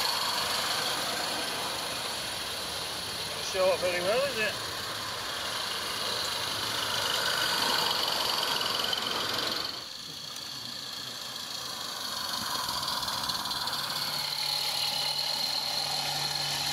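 Train wheels rattle and click over rail joints.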